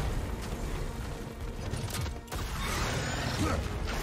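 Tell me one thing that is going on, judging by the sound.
A huge beast roars.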